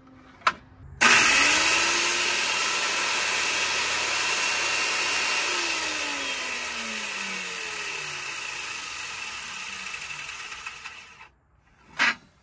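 A circular saw roars loudly through wood, then winds down.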